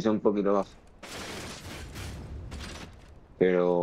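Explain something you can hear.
A sword swings and strikes with a metallic hit.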